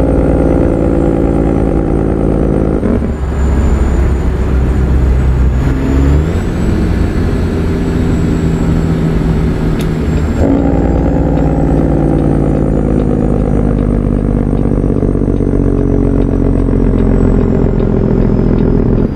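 A truck engine hums steadily, with its pitch shifting at gear changes.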